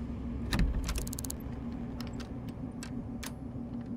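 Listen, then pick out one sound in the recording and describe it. A lock pick clicks and scrapes inside a door lock.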